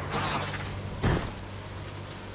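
A heavy thud lands.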